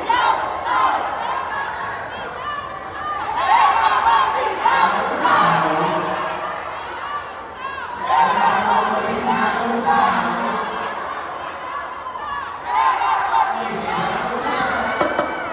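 A drumline plays snare and bass drums in a large echoing hall.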